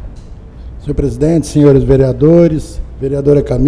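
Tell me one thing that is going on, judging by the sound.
A man speaks through a microphone in a large, echoing hall.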